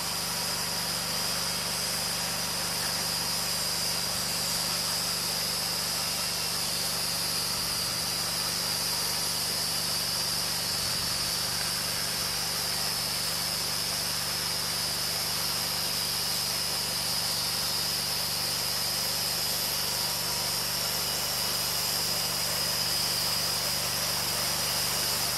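A band saw blade whines as it cuts through a log.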